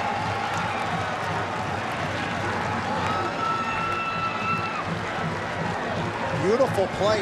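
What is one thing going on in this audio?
Football players shout and cheer outdoors.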